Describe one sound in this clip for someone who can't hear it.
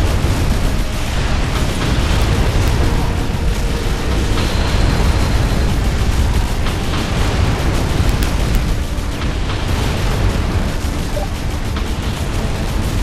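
Explosions rumble and boom in the background.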